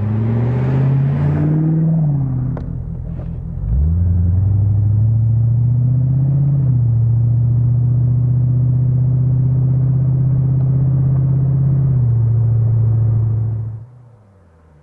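A car engine drones loudly, shifting gears and revving up.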